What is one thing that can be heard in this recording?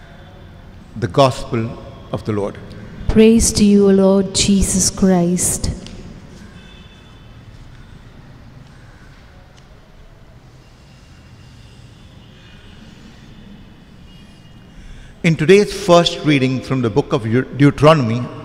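An elderly man speaks slowly and with feeling into a microphone, with pauses.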